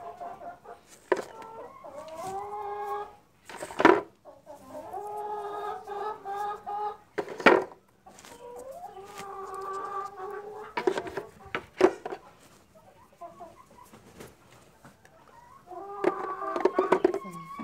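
Eggs clink against each other as they are set into a bowl.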